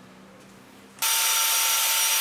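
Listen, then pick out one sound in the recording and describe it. A power tool starts and runs with a loud, steady whine.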